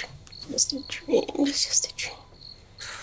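A woman sighs and speaks softly, close by.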